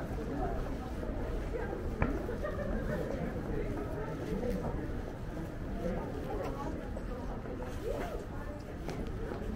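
Men and women chat quietly a short way off.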